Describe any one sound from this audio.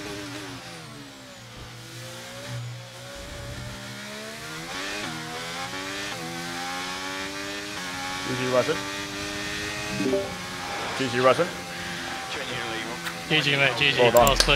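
A racing car engine roars and rises in pitch as it shifts through gears.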